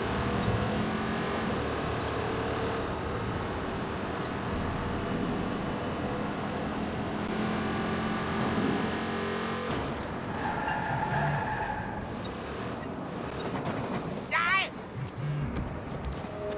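A car engine hums and revs steadily while driving.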